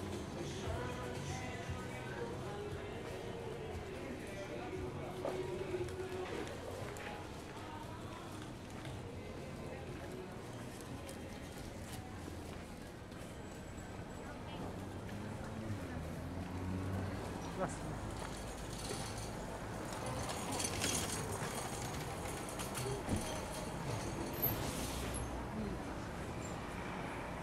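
A street market murmurs in the background.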